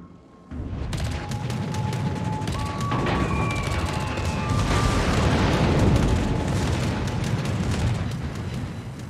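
Anti-aircraft guns fire in rapid bursts.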